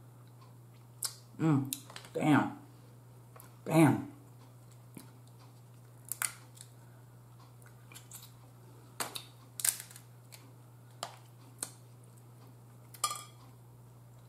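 Crab shells crack and click as they are picked apart.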